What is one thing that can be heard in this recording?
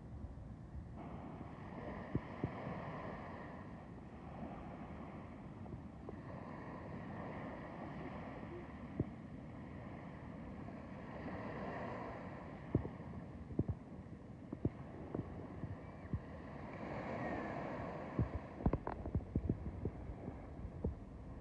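Small waves wash gently onto a sandy shore in slow, rhythmic swells.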